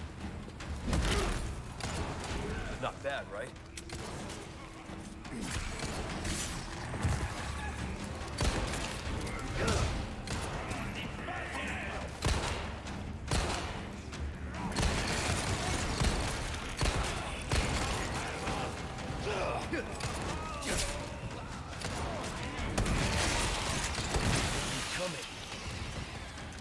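Gunshots bang sharply and echo.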